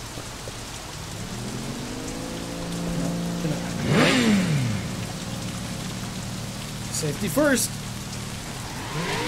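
A motorbike engine idles and revs.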